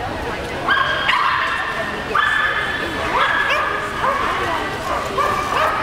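A woman calls out loud, high commands in a large echoing hall.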